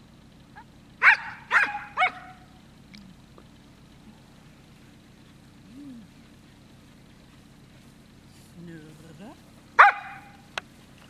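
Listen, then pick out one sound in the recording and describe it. A spaniel barks sharply outdoors.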